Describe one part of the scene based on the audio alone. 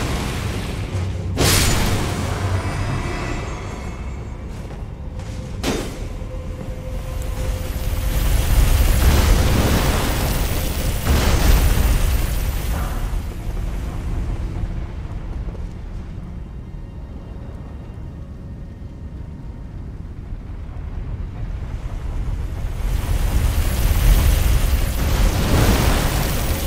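Lava bubbles and roars with a low rumble.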